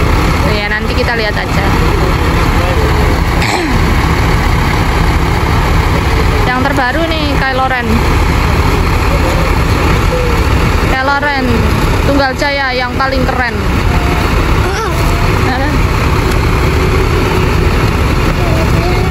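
Bus engines idle with a deep, steady rumble.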